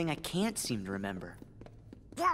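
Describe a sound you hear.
A teenage boy speaks hesitantly.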